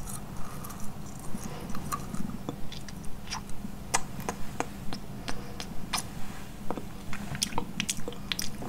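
A brush scratches softly against lips close to a microphone.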